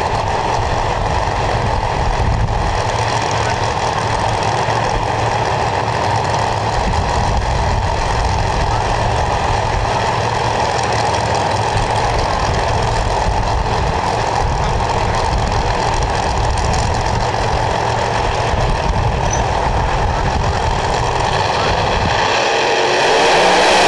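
Loud race car engines idle with a heavy, rough rumble.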